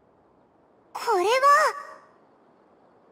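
A girl exclaims in a high, startled voice.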